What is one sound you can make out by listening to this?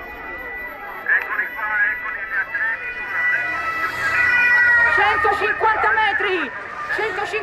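Motorcycles roar past on the road.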